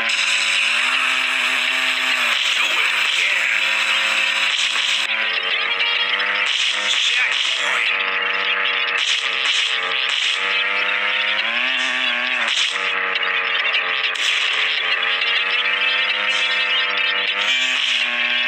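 A racing car engine roars at high revs, its pitch rising and falling.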